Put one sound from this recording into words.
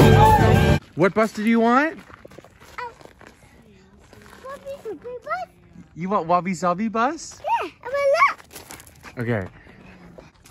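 A small child talks excitedly close by.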